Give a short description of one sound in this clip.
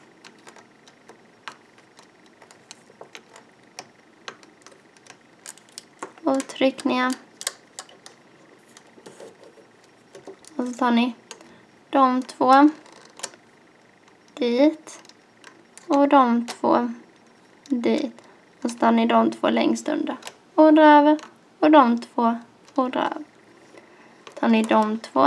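Rubber bands snap and click softly against a plastic loom as a hook works them.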